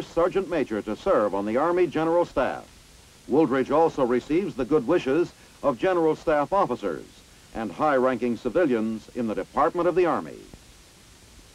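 A man speaks calmly and clearly, close to the microphone.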